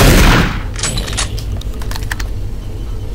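A shotgun is pumped with metallic clicks.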